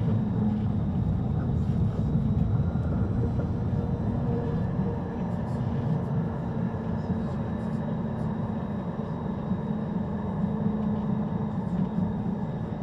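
A tram hums steadily while it stands still.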